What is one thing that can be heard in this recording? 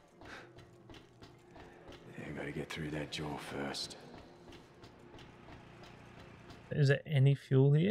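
Footsteps run over a hard floor.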